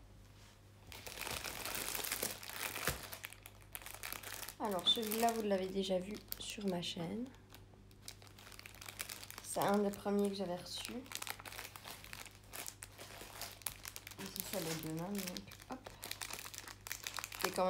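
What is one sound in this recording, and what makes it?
A clear plastic sleeve crinkles as it is handled.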